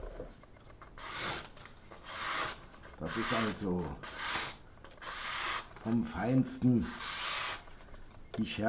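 Stiff paper rustles and crinkles as it is handled.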